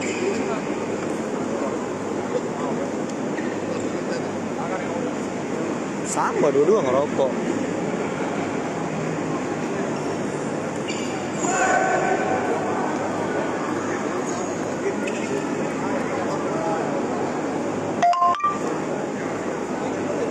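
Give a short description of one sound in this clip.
A crowd chatters throughout a large echoing hall.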